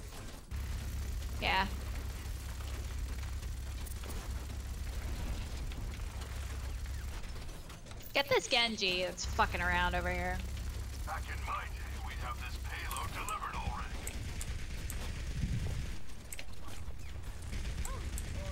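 Gunfire rattles rapidly in a game.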